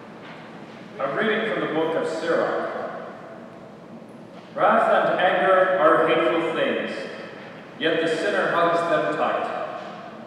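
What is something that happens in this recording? A young man reads out calmly through a microphone in a large echoing hall.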